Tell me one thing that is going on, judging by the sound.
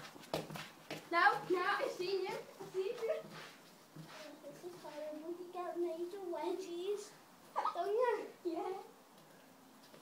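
A young boy talks with animation, close by.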